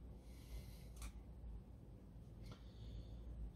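A plastic switch clicks a few times.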